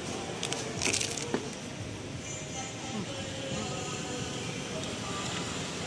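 A woman chews food and smacks her lips.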